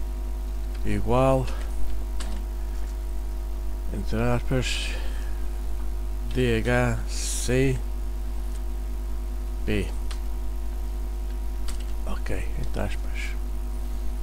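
A man speaks calmly in short phrases into a microphone, with pauses between them.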